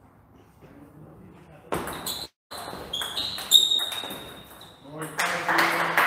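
A ping-pong ball clicks back and forth off paddles and a table in a large echoing hall.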